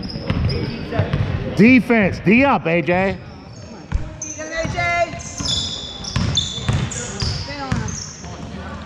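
A basketball thumps as it is dribbled on the court.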